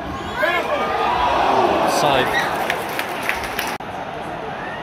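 A large stadium crowd roars and cheers in an open-air stadium.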